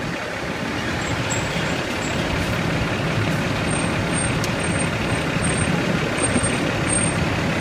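A truck's diesel engine idles with a steady low rumble.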